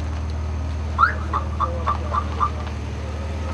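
A car alarm chirps several times in quick succession.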